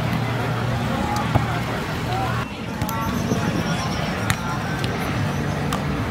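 A crowd chatters in the background outdoors.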